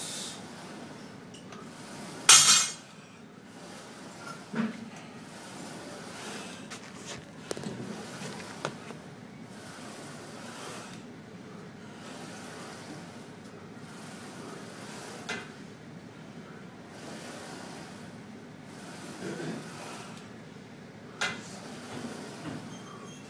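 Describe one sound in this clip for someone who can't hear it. A man breathes hard with each push.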